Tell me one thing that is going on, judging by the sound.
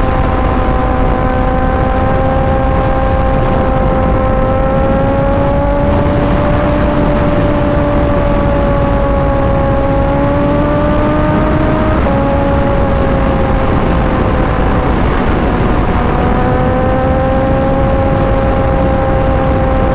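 A motorcycle engine hums steadily at high speed, its pitch rising and dropping with gear shifts.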